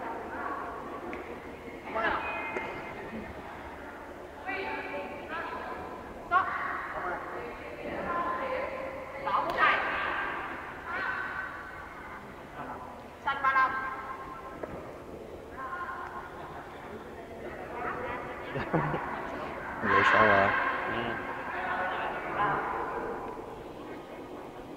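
Young people talk and call out in a large echoing hall.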